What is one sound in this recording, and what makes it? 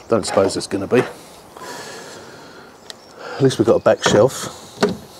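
A car boot lid clicks open.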